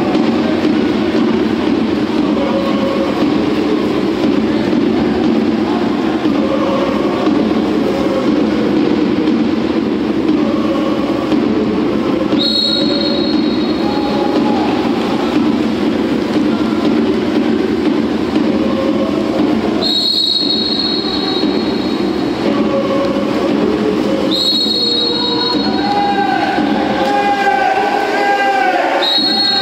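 Swimmers splash and churn the water.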